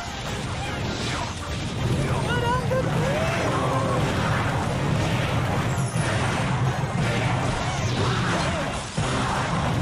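Cartoon battle sound effects clash, pop and bang without a break.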